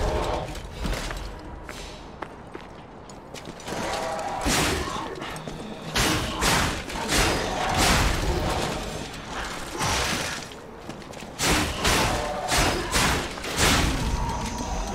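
Swords clash and slash in quick, heavy blows.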